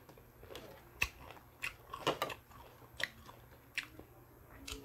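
Crispy food crunches as it is bitten.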